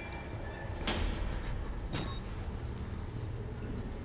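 A metal locker door clanks shut.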